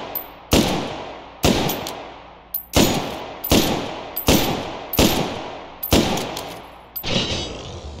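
A rifle fires single loud shots that echo in a hard, reverberant corridor.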